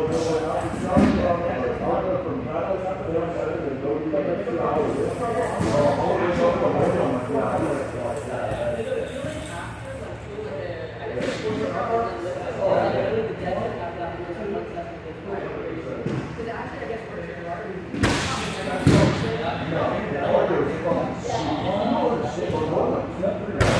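Several men talk casually in an echoing room.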